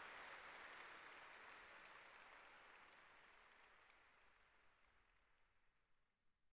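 An audience applauds in a large echoing hall, and the clapping slowly fades away.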